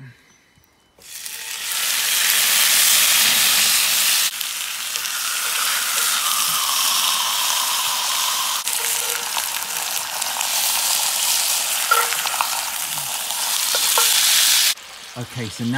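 Meat sizzles loudly on a hot pan.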